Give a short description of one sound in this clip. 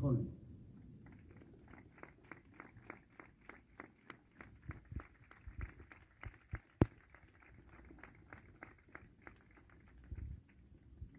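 A crowd applauds outdoors with steady, even clapping.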